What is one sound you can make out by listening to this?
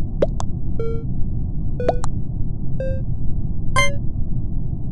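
Short electronic game chimes ring out several times.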